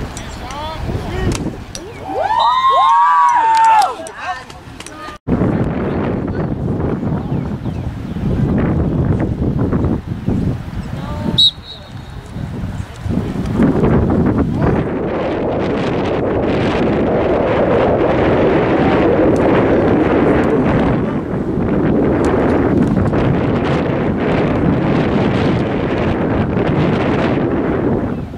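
Wind blows hard across the microphone, rumbling.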